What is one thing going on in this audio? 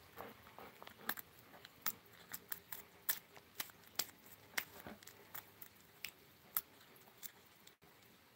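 A hen pecks food from a hand with quick sharp taps.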